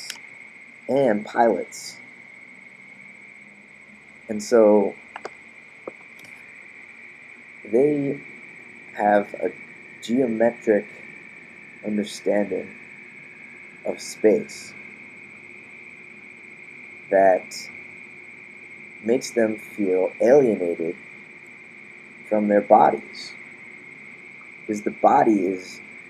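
A young man speaks in short bursts close to a microphone, pausing often.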